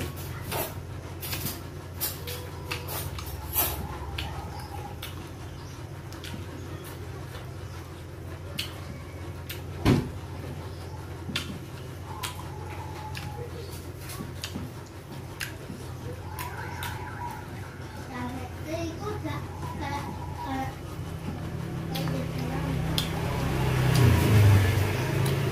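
A man chews food with wet, smacking sounds close by.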